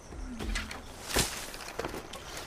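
Reeds are pulled up with a quick rustling snap.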